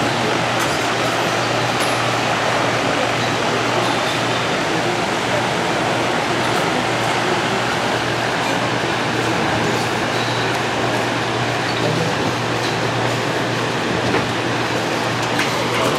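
A large fan blows with a loud, steady whoosh and hum.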